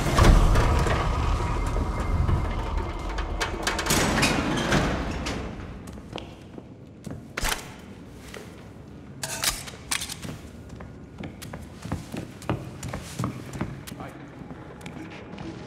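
Footsteps crunch on a debris-strewn concrete floor.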